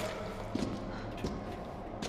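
Footsteps clank on a metal grate.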